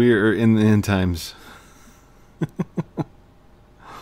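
A man laughs loudly close to a microphone.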